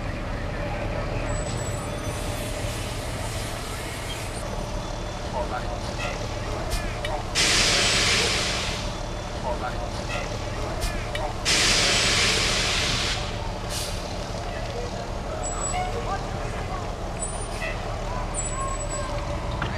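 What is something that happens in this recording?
A fire engine's motor rumbles nearby.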